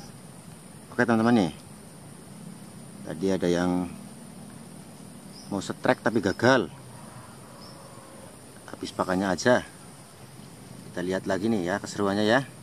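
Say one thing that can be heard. A young man speaks close by in short bursts, calmly explaining.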